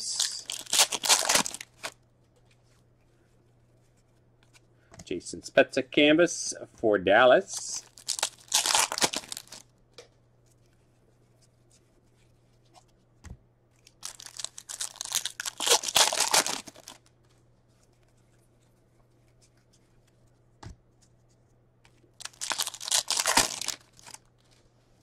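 A foil wrapper crinkles and tears open in bursts.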